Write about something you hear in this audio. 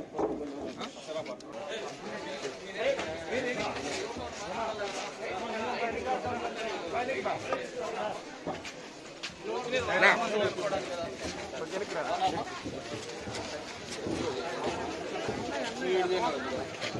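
A crowd of men talks loudly all at once outdoors.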